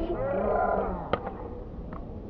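A metal bat cracks against a ball.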